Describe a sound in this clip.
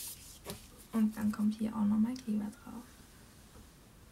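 A glue stick rubs across paper.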